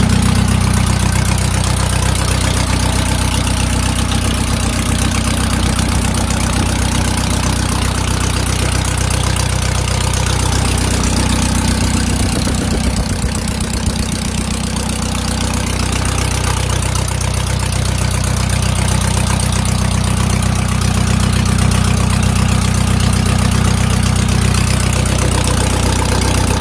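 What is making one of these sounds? A diesel engine idles with a steady, loud rattle close by.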